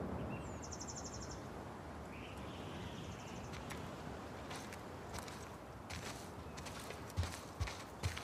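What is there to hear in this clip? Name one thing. Footsteps tap along a walkway outdoors.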